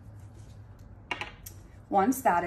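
Small glass vials clink as they are set down on a table.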